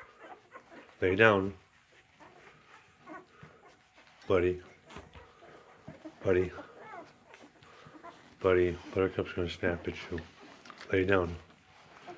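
Newborn puppies squeal and whimper close by.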